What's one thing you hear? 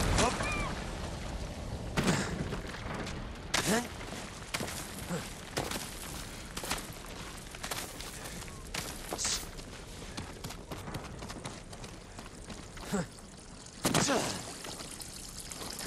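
Hands and feet scrape and thud on rock during a climb.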